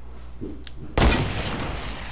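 A single loud gunshot rings out.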